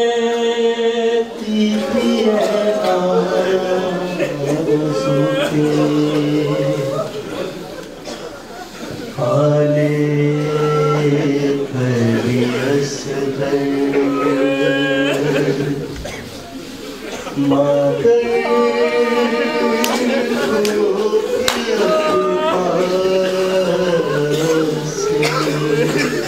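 A crowd of men chants loudly in unison, in long drawn-out tones.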